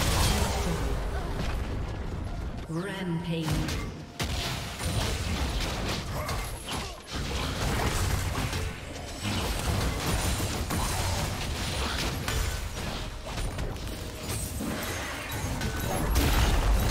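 Video game combat effects clash and crackle with rapid magical blasts and hits.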